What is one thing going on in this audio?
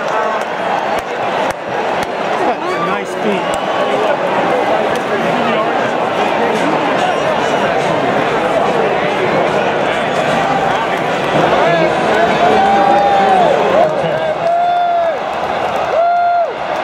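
A large stadium crowd roars and cheers in the open air.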